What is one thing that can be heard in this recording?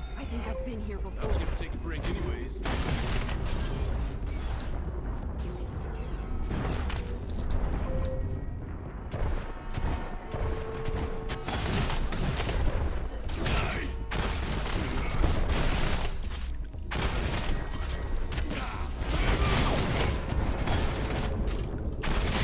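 A game gun fires in rapid bursts.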